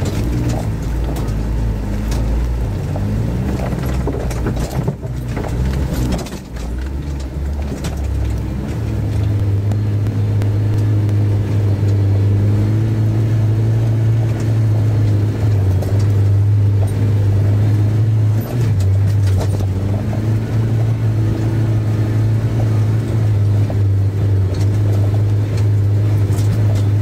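A vehicle bumps and rattles over uneven ground.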